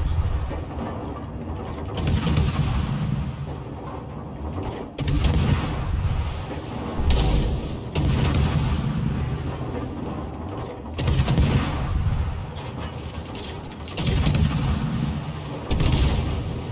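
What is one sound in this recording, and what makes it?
Shells splash and explode in the water with deep rumbling blasts.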